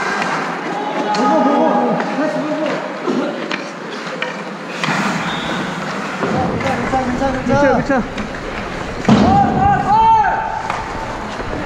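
Young men shout and call out to each other in an echoing rink.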